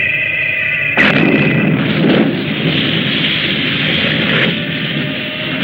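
A huge explosion booms suddenly and rumbles on as a long roar.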